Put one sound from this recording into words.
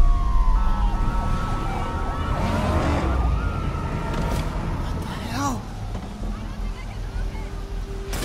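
Strong wind roars and howls.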